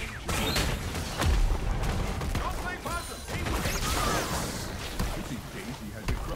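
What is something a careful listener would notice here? Game spells whoosh and crackle during a fight.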